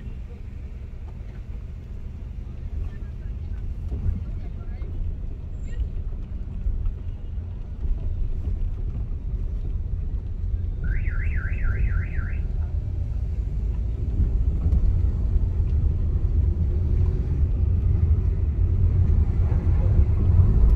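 A car engine rumbles steadily from inside as the car drives along.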